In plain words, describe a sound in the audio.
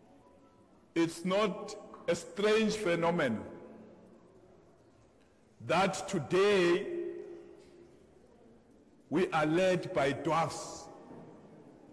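A middle-aged man speaks with animation, pausing between phrases.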